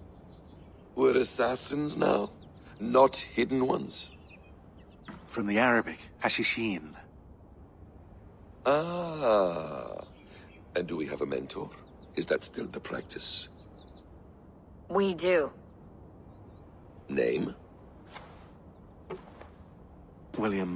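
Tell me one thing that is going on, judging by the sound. A man speaks calmly and questioningly, close by.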